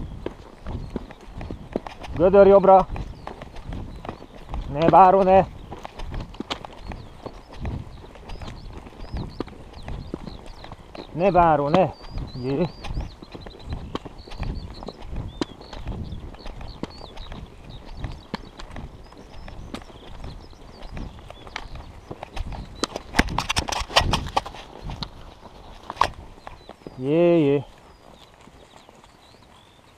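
Horse hooves thud in a steady gallop on grass.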